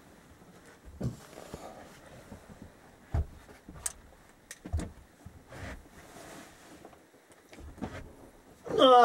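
Knocks and bumps sound close by.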